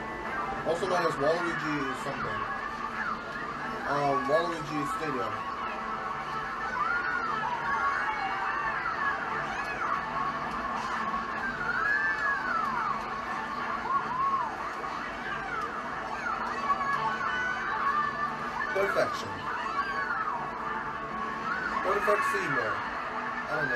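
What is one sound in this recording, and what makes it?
Music from a video game plays steadily through a television speaker.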